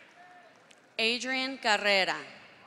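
A man speaks loudly through a loudspeaker in a large echoing hall.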